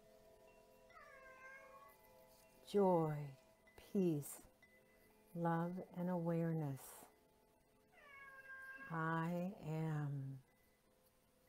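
An older woman chants slowly in long, drawn-out tones, close by.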